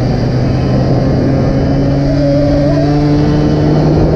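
Another motorcycle's engine passes close by.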